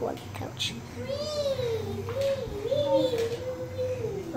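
A small hedgehog's feet patter softly on a wooden floor.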